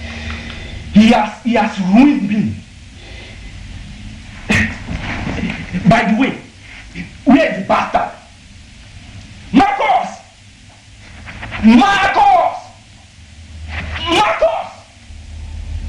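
A man speaks loudly and angrily in short bursts.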